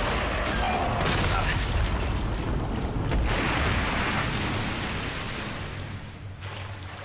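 A loud explosion booms and rumbles, then slowly dies away.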